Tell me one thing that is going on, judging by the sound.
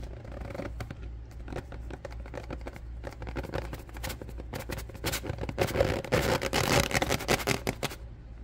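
Powder pours from a paper bag into a plastic bowl with a soft rustle.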